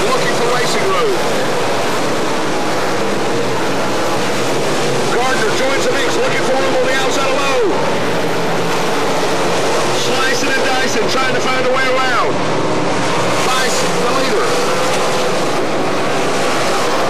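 Several race car engines roar loudly.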